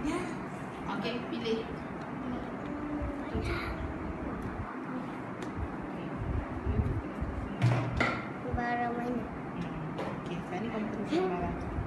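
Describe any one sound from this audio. Children chatter nearby.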